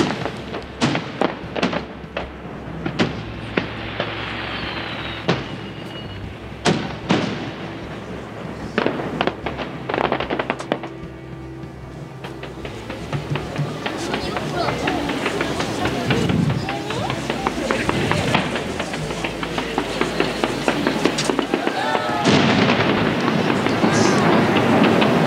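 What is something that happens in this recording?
Fireworks boom and bang loudly outdoors.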